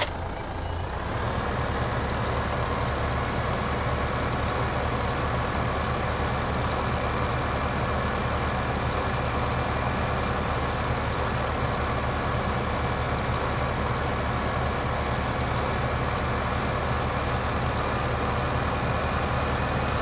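A towed machine rattles and whirs behind a tractor.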